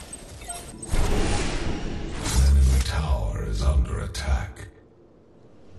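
A loud magical whoosh surges up and fades.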